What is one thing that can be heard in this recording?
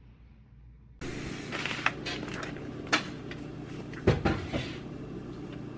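A plastic food tray crinkles as it is handled.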